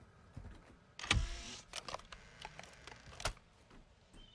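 A door swings open with a loud bang.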